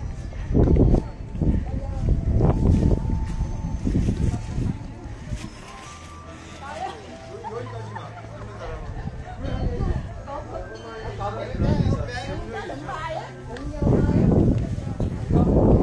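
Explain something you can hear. Wind gusts hard across the microphone outdoors.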